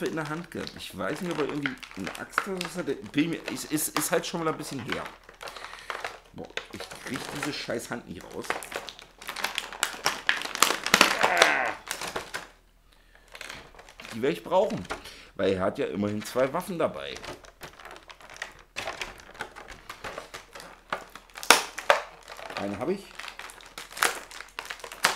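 Plastic packaging crinkles and rustles in a man's hands.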